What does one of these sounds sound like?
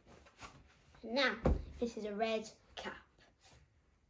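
A young boy speaks with animation, close by.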